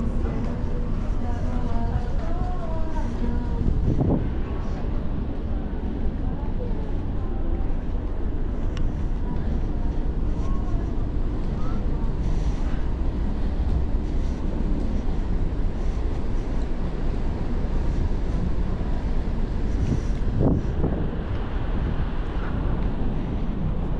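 Wind blows steadily outdoors, rumbling into the microphone.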